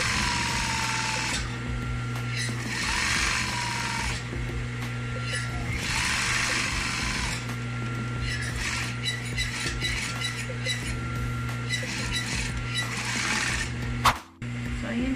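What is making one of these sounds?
A sewing machine stitches in quick bursts.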